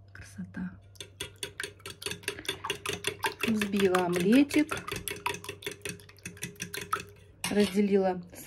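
A fork beats eggs in a metal bowl with quick, rhythmic clinks.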